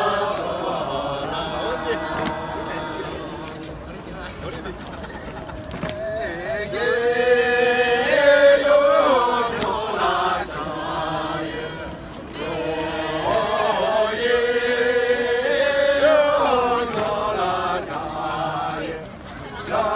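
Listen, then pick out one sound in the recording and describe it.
A group of men and women sing together outdoors in a slow, swelling chant.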